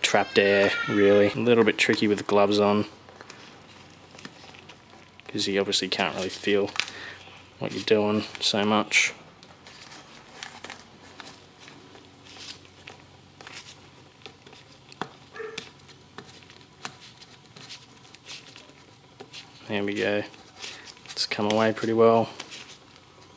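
A stiff plastic part creaks and rustles as gloved hands bend it.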